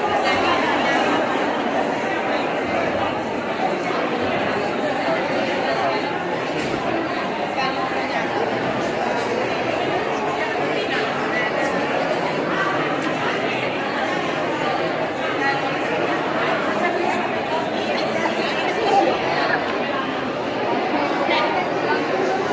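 A crowd of men and women chatter all around in an echoing hall.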